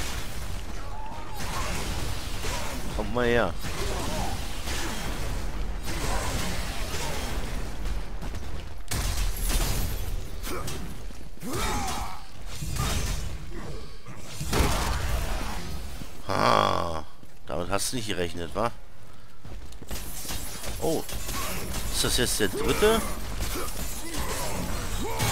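Weapons whoosh through the air in quick swings.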